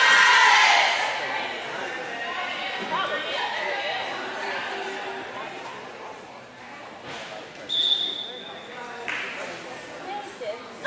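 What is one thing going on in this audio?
Young women chatter and call out to each other in an echoing hall.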